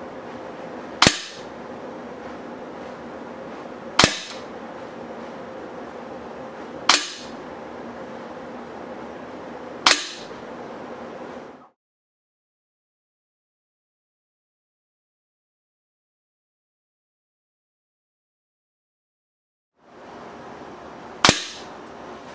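Pellets strike a paper target one at a time with sharp snaps.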